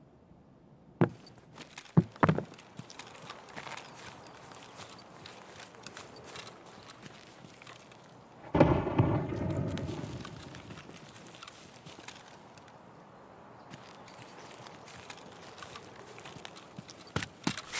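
Footsteps rustle through grass and bushes.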